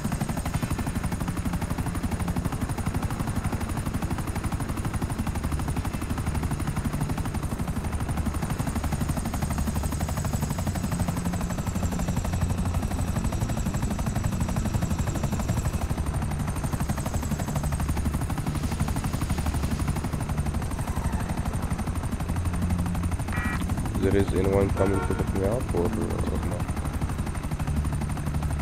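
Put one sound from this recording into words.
A helicopter's rotor thumps steadily and loudly.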